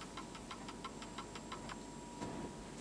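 A wind-up alarm clock ticks.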